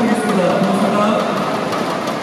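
A young woman speaks into a microphone over loudspeakers.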